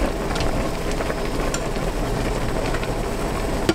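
Chopsticks tap and stir noodles in a pot.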